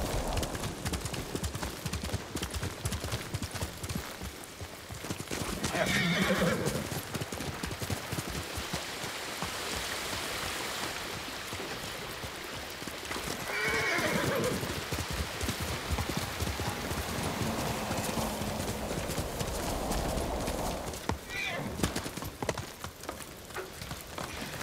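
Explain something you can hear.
Horse hooves thud rapidly on a forest trail.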